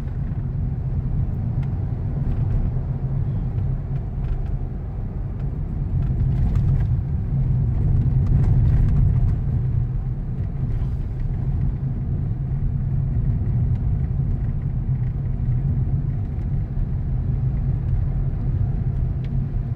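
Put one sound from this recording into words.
Traffic passes on the road outside.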